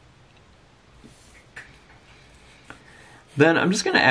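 A felt marker squeaks and scratches softly on paper.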